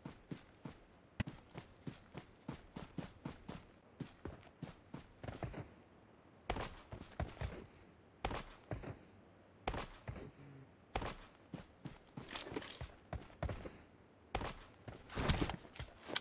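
Quick footsteps rustle through dry grass.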